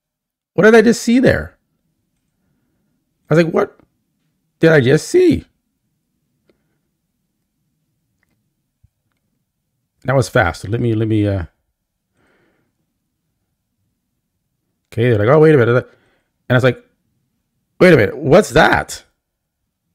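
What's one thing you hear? A man speaks with animation nearby, in short bursts with pauses.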